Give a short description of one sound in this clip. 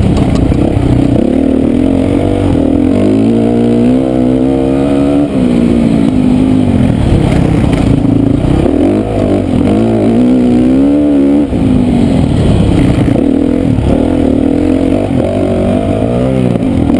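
A motorcycle engine roars loudly close by, revving up and down as it shifts gears.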